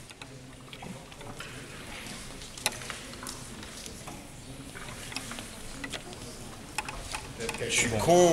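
Small plastic figures click as they flick a tiny ball across a table.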